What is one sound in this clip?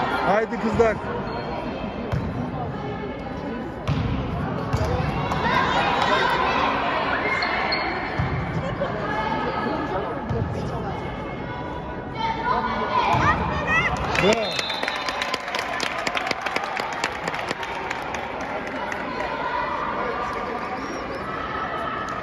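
A volleyball thuds as it is struck by hand in a large echoing hall.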